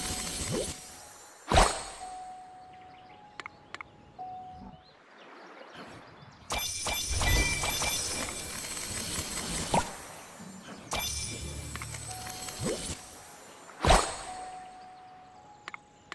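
Bright game chimes and coin jingles ring out.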